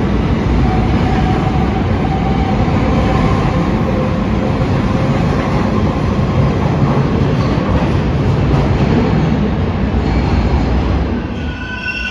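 A subway train rumbles loudly away down the tracks, echoing in the station.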